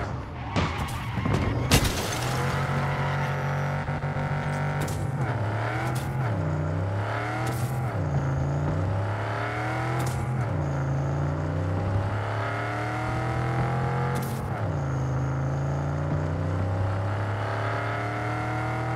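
A car engine roars and revs up repeatedly, dropping in pitch at each gear change.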